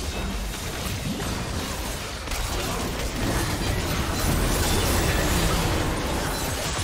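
Magic blasts and clashing weapon effects crackle and boom in a busy battle.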